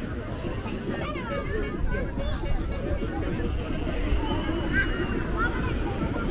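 Young children shout and squeal nearby as they play.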